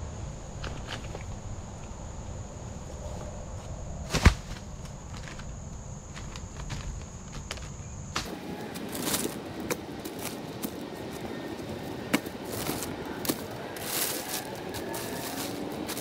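Branches snap and knock.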